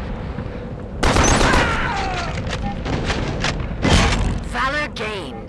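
A rifle fires in loud bursts.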